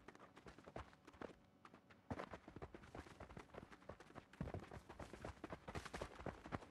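Many footsteps patter quickly on hard ground.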